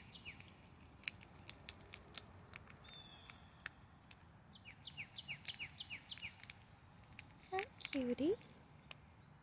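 A chipmunk nibbles at a peanut shell with small, crisp clicks.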